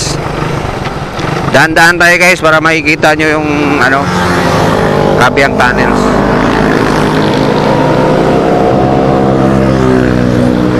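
A motorcycle engine hums steadily, its pitch slowly rising.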